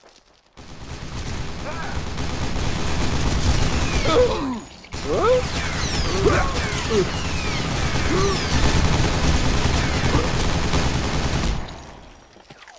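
A heavy machine gun fires in rapid, loud bursts.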